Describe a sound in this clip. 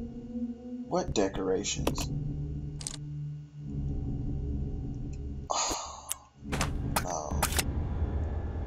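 Menu clicks and beeps sound as an item is rotated.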